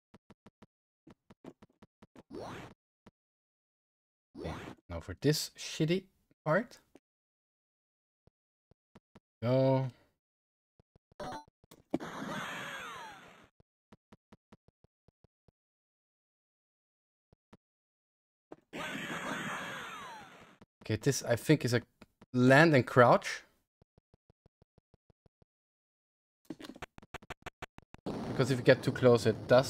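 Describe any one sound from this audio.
Retro game sound effects beep and blip.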